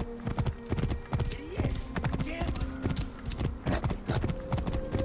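Horse hooves thud rapidly on dirt at a gallop.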